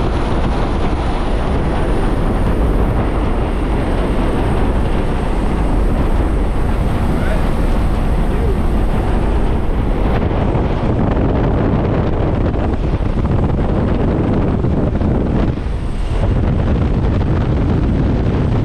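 Loud wind roars and buffets through an open aircraft door.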